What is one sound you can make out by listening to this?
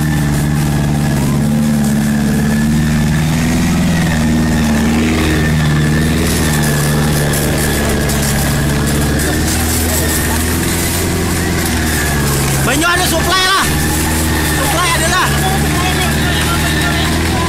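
An engine drones steadily close by.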